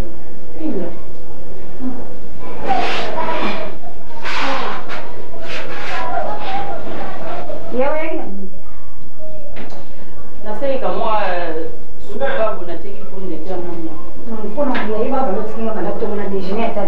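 A woman speaks close by, emotionally, with a strained voice.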